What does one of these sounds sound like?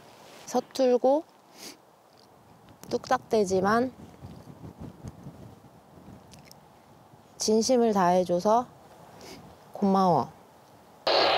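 A young woman speaks softly and haltingly through a walkie-talkie.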